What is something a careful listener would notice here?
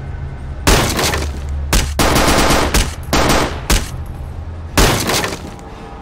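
Wooden boards splinter and break apart.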